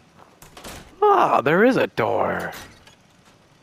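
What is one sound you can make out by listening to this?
A heavy metal door creaks open with a loud groan.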